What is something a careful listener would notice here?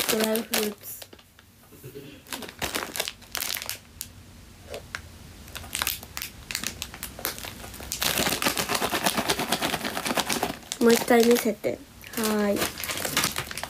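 A young woman speaks in short, soft bursts close to the microphone.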